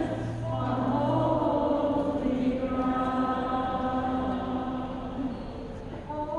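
A woman sings through loudspeakers in a large echoing hall.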